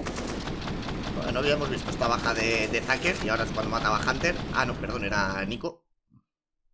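A man talks excitedly into a headset microphone.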